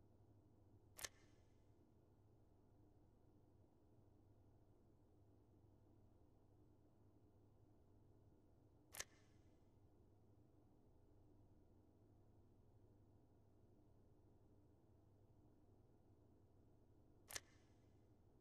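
A short interface chime sounds each time a page of text turns.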